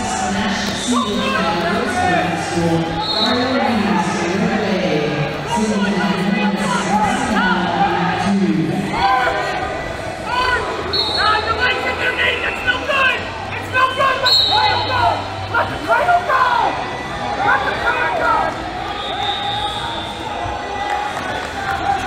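Wrestlers' shoes squeak briefly on a mat.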